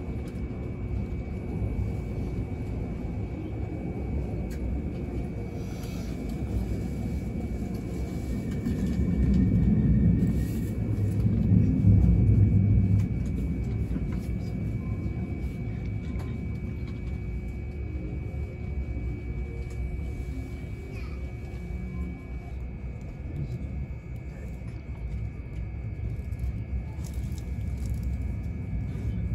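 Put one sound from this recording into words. A train rumbles steadily through a station, heard from inside a carriage.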